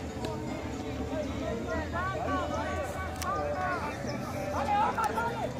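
A crowd of spectators chatters and shouts in the distance outdoors.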